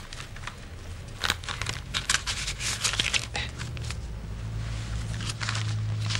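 Pages of a brochure rustle as they are turned.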